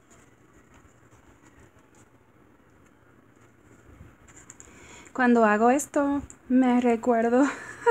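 Paper crinkles and rustles as it is handled.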